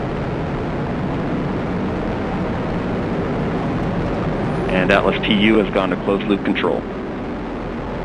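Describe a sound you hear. A rocket engine roars steadily as a rocket climbs.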